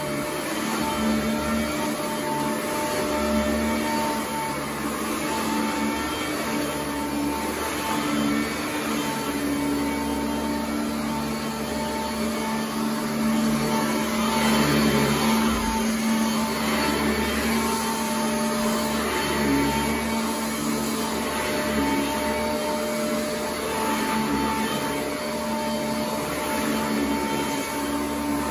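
A vacuum cleaner brushes back and forth over carpet.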